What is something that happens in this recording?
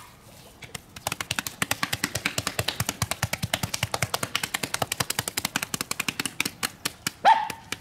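Hands slap and pat wet clay quickly.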